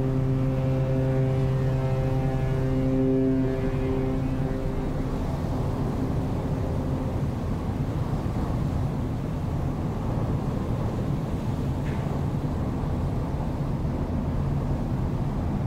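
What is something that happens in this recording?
Churning water rushes and swirls below a ship's side.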